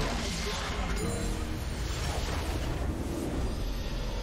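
Game spells and weapons clash in rapid, noisy bursts.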